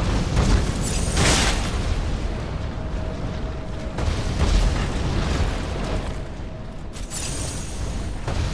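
Electric bursts crackle and zap sharply.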